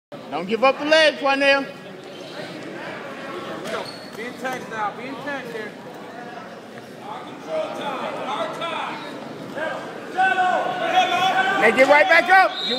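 Spectators shout and cheer loudly in a large echoing hall.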